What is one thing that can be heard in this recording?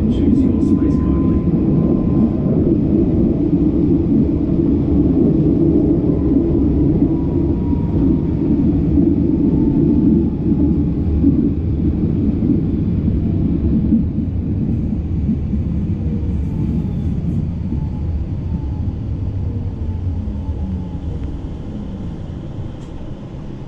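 Train wheels click over the rail joints.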